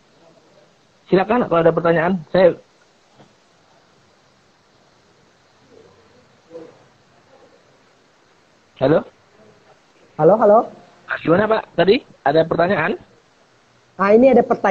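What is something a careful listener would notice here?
A young man speaks over an online call, in short bursts.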